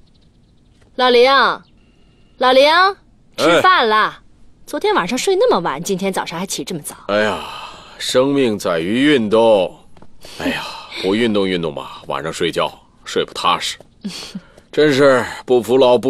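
A middle-aged woman calls out and then talks calmly nearby.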